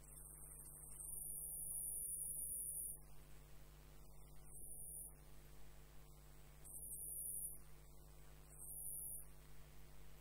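A gouge hollows spinning wood on a lathe in scraping bursts.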